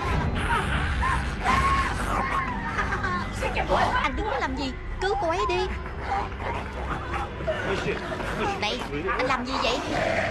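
A man shouts and grunts up close.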